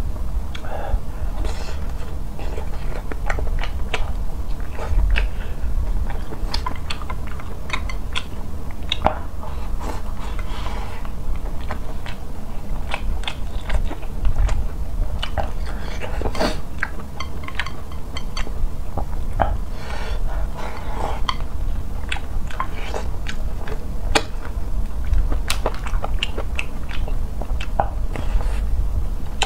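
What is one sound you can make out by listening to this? A young man chews and slurps food close to a microphone.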